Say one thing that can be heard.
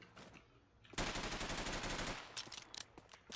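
A gun fires in a video game.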